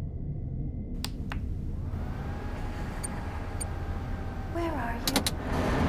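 An old computer monitor clicks on and buzzes.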